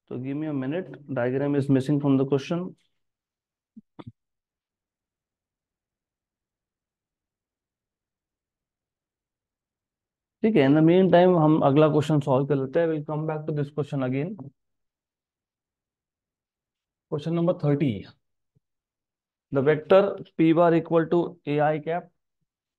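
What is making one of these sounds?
A man explains calmly through a microphone, pausing now and then.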